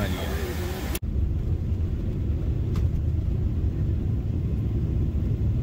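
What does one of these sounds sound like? A jet engine roars with a low, steady rumble.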